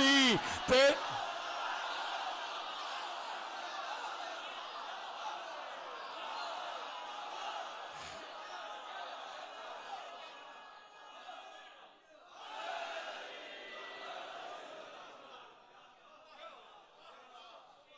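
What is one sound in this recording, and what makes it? A large crowd of men cries out and murmurs together.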